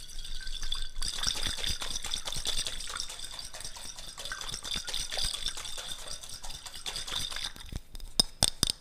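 Fingers rub and scratch a glass jar close to a microphone.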